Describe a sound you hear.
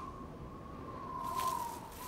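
A horse's hooves thud slowly on soft ground.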